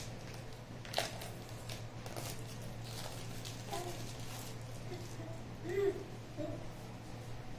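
A plastic wrapper crinkles.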